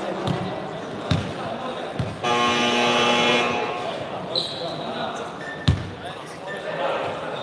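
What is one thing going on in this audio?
A crowd of young people chatters in the background.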